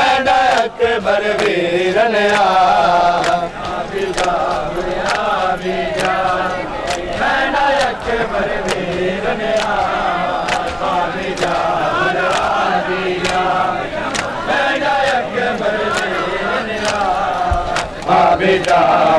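Men beat their chests in a steady rhythm of slaps.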